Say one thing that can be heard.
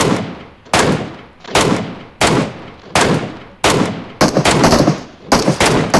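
Rifle shots crack one after another.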